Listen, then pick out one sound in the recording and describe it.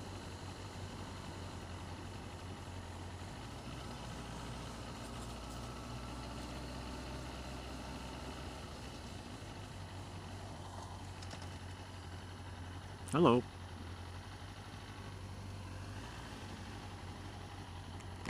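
A motorcycle engine hums steadily at low speed.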